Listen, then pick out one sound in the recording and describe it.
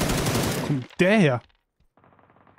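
A man exclaims loudly close to a microphone.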